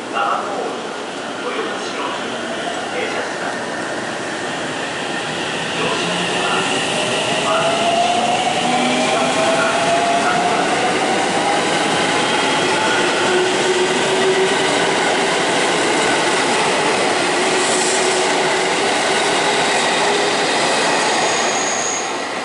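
A train pulls away, its electric motors whining higher as it speeds up.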